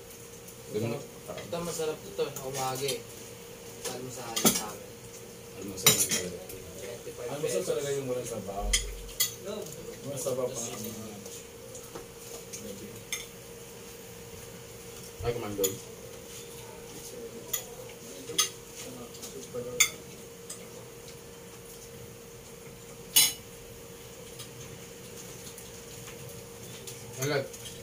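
Spoons and forks clink against plates.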